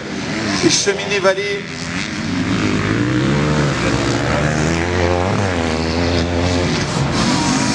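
A motorbike engine whines loudly as it passes close by and fades.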